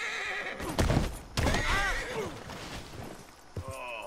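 A man falls heavily to the ground with a thud.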